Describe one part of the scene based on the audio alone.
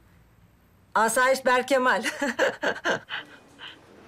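A woman speaks cheerfully on a phone, close by.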